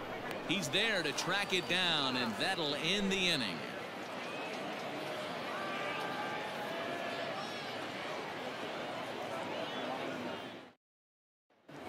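A large crowd murmurs steadily in an open stadium.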